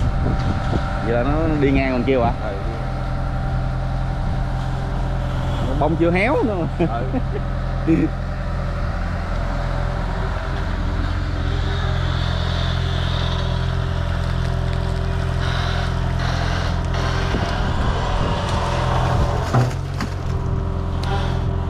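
A diesel excavator engine rumbles steadily close by.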